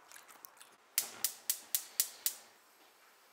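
A gas stove igniter clicks rapidly.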